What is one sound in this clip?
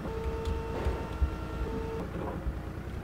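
A forklift engine hums steadily.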